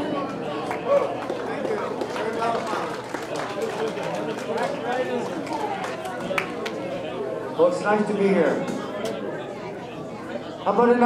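A crowd of older men and women chatter and laugh nearby in an echoing hall.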